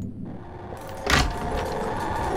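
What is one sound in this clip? A wooden wardrobe door swings open with a knock.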